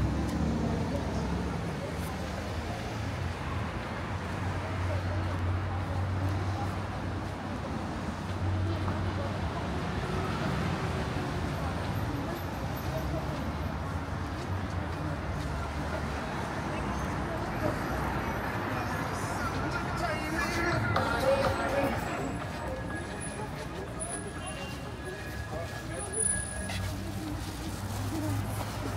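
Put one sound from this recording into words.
City traffic hums and rumbles nearby outdoors.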